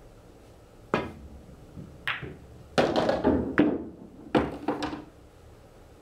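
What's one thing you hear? Pool balls clack against each other and thud off the cushions.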